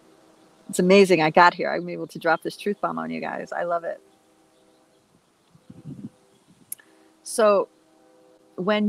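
A middle-aged woman speaks warmly and with animation into a close microphone.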